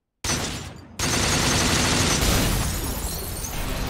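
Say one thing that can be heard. Glass shatters with a loud crash.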